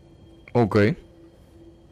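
A man exclaims briefly into a close microphone.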